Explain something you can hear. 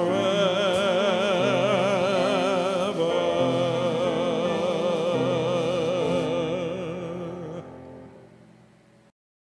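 A man sings into a microphone in a large echoing hall.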